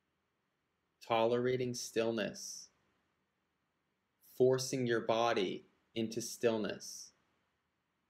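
A man speaks calmly and close to the microphone, in short phrases with pauses.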